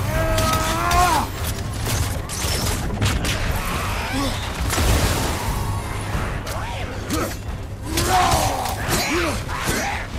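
Heavy weapon blows clang and thud in a fight.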